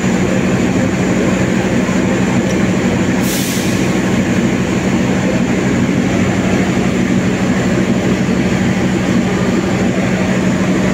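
A train engine hums steadily nearby.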